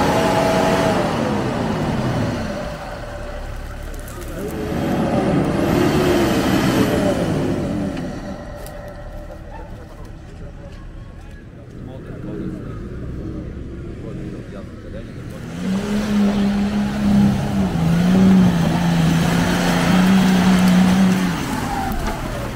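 An off-road vehicle's engine revs hard and roars.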